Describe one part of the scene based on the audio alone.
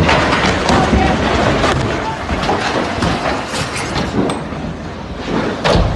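Rocks smash into the ground nearby with sharp impacts.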